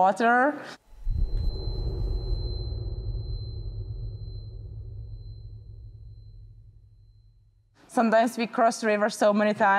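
A woman speaks calmly and cheerfully, close to a microphone.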